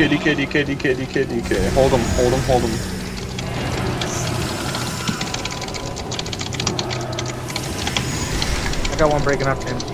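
Magic spells crackle and whoosh in a game battle.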